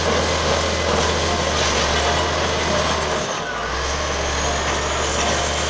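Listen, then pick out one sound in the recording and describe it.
Rocks scrape and crunch under a bulldozer's blade.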